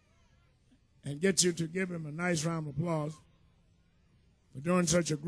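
A man sings loudly into a microphone.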